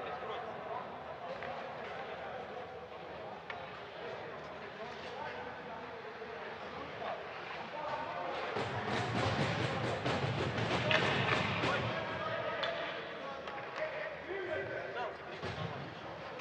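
Ice skates scrape and hiss on the ice in a large echoing arena.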